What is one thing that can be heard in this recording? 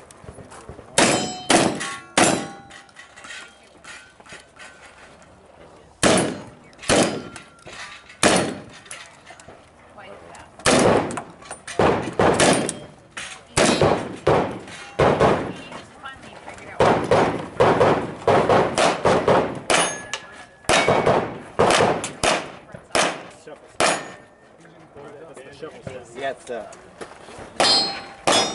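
Gunshots crack loudly outdoors, fired in quick bursts.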